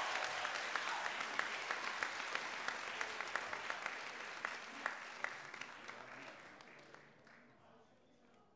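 A group of people applaud in a large room, the clapping fading out.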